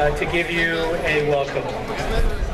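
An elderly man speaks through a loudspeaker outdoors.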